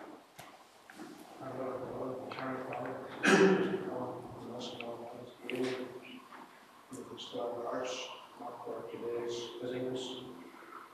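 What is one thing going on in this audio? A man reads out calmly through a microphone in an echoing hall.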